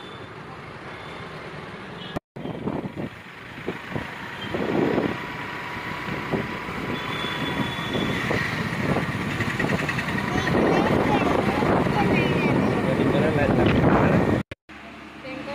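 Heavy traffic rumbles past close by.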